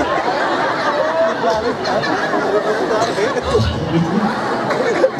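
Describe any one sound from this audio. A crowd of men laughs.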